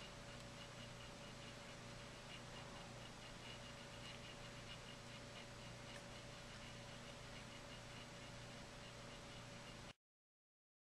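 A small turntable motor hums steadily.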